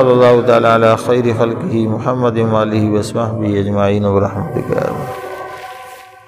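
An older man chants a prayer in a melodic voice, close to a microphone, in an echoing room.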